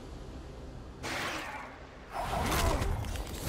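Magic blasts whoosh and crackle in a video game fight.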